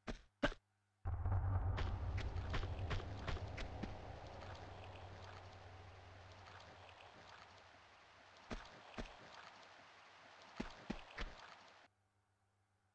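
Water rushes and splashes loudly.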